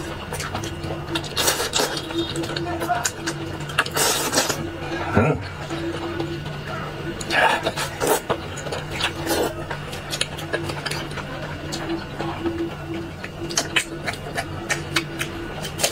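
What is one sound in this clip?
A man slurps and chews food noisily, close by.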